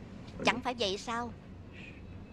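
A child exclaims in a high voice close by.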